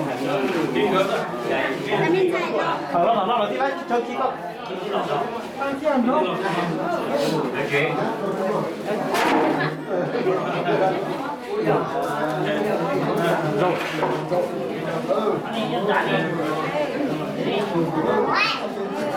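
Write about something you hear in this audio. A crowd of men and women chat all at once.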